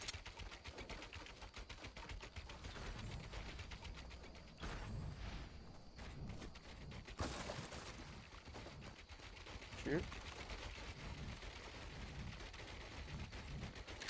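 Quick clicking thuds sound as walls are built in a video game.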